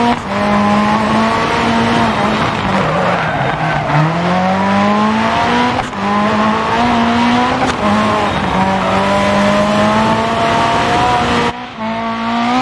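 A car engine revs hard, climbing in pitch and dropping sharply with each gear change.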